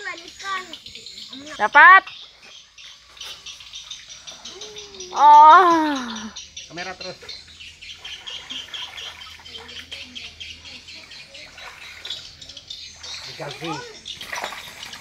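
Water splashes as people wade through it.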